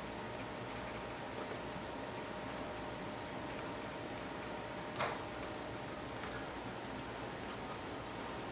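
A pen scratches softly on paper.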